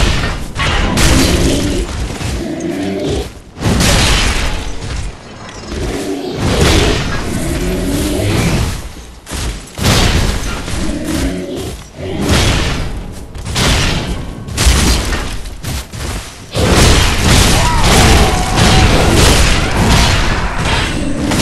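Heavy armoured footsteps thud on stone.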